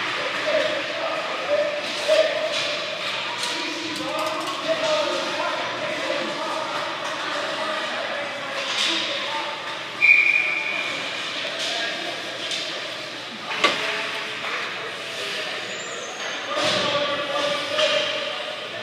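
Skates scrape across ice in a large echoing rink.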